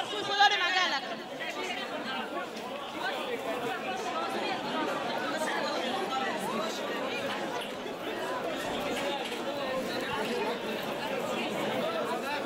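Plastic wrapping and bags rustle.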